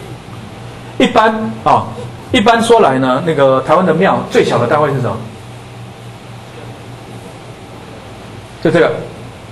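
A man lectures into a microphone, speaking in short bursts, heard through a loudspeaker system.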